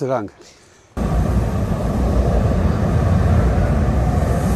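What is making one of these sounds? Stormy waves roar and crash loudly.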